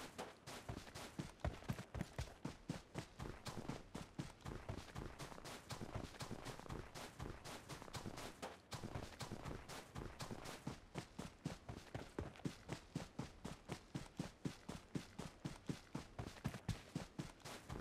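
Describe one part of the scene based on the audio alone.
Footsteps run quickly and steadily over snow and grass.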